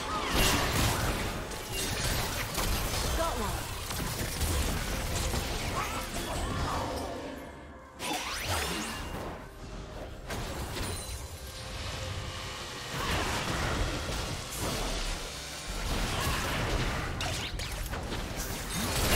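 Magic spells whoosh and crackle in quick bursts.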